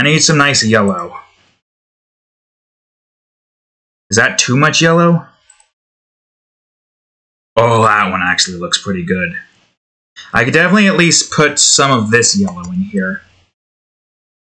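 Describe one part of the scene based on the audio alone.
A young man speaks calmly into a close microphone, in short bursts with pauses.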